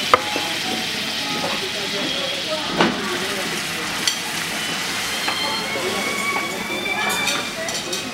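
Metal utensils clink against a pan.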